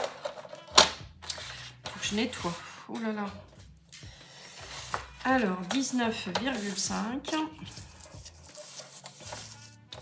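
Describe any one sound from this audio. Paper rustles as it is handled and slid into place.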